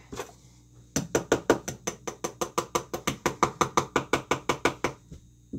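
Dough is slapped and kneaded in a metal bowl in a quick, steady rhythm.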